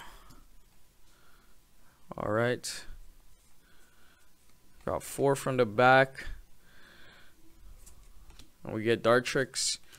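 Trading cards slide and flick against each other in hands.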